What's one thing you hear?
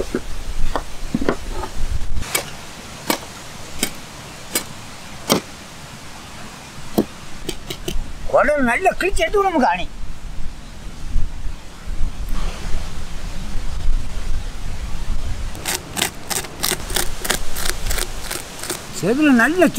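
A knife scrapes scales off a fish with sharp clicks.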